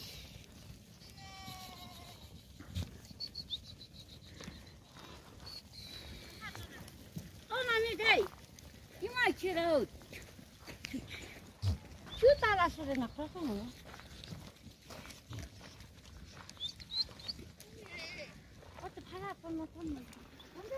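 Many hooves patter over stony ground.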